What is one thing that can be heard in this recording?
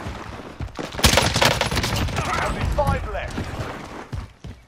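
Rapid gunfire bursts out close by.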